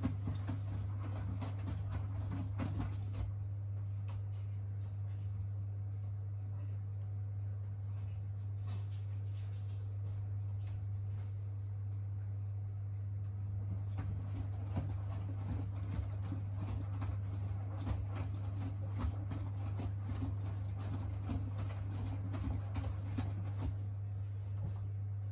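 Wet laundry sloshes and thumps inside a turning drum.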